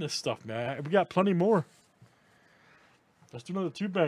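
A cardboard box slides across a tabletop.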